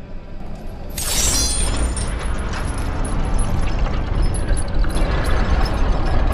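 Metal chains rattle and clank as blades swing.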